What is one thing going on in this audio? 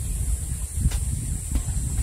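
A hoe thuds into dry earth.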